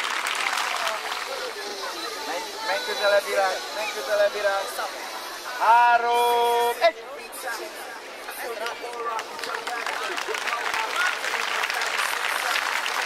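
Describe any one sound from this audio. A crowd of children and adults chatters outdoors.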